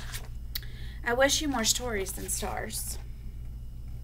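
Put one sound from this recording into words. A woman reads aloud calmly, close to a microphone.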